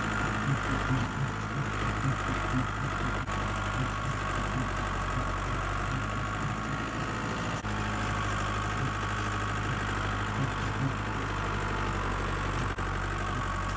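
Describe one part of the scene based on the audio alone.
A tractor rattles and creaks as it drives over rough ground.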